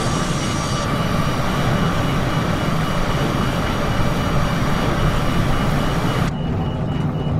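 Jet engines roar loudly outside the aircraft.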